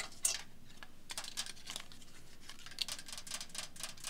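A plastic bag crinkles as fingers handle it close by.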